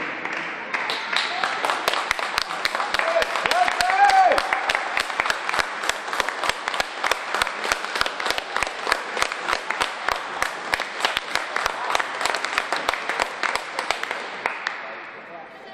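A crowd claps in a steady rhythm in a large echoing hall.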